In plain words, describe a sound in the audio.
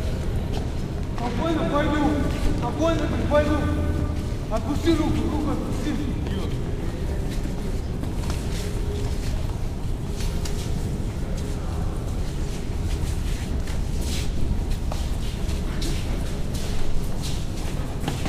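Footsteps shuffle on a hard floor in a large echoing hall.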